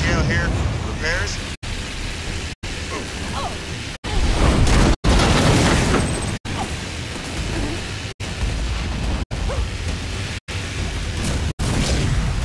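Energy weapons crackle and zap in a game battle.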